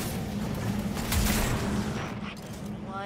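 A gun fires a burst of shots.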